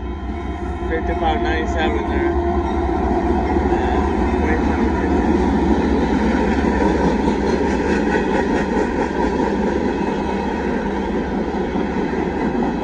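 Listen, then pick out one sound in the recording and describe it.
A train rumbles past close by, growing louder.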